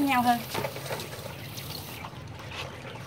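Water pours from a watering can onto soil.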